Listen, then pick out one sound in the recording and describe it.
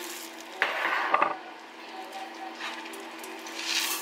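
Dry oats pour and rattle into a bowl.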